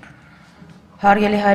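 A woman speaks into a microphone, heard through loudspeakers in a large hall.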